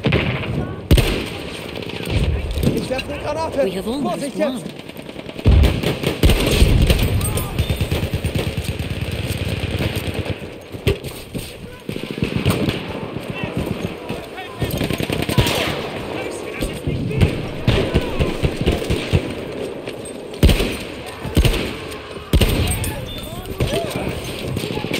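A rifle fires repeated loud shots.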